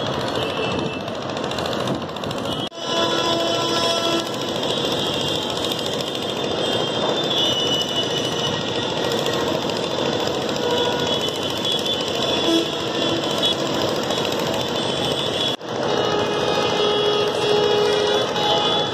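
Busy city traffic rumbles steadily below.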